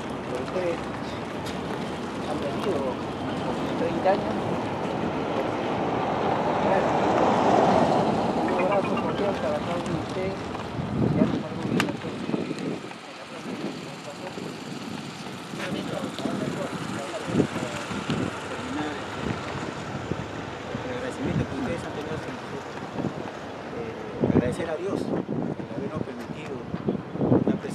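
A man speaks with animation to a group outdoors.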